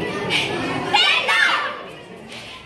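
A group of young girls shouts together in unison.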